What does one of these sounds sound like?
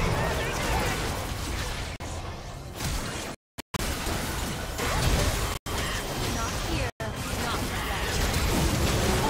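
Magic blasts whoosh and crackle in a hectic game battle.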